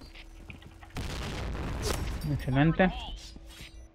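A stun grenade goes off with a loud bang.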